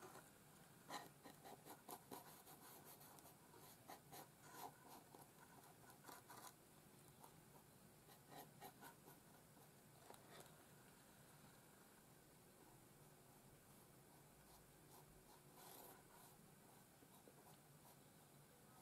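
A small brush scrapes and taps against stiff card.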